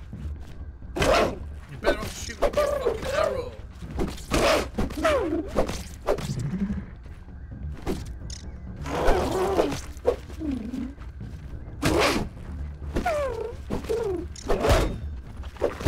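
A weapon strikes a hard shell with sharp thwacks.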